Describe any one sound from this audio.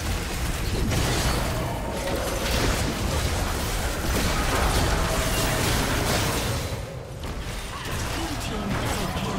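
Magic blasts whoosh and crackle in a hectic fantasy battle game fight.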